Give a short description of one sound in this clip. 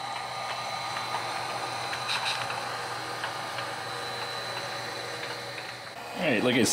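A model freight car rumbles and clicks along the track.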